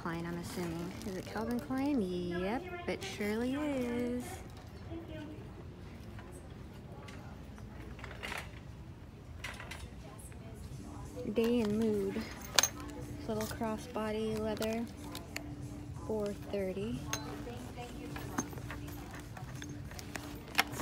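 Leather handbags rustle and creak as a hand handles them.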